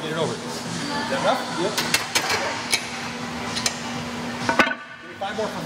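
Metal weight plates clank as they are loaded onto a machine.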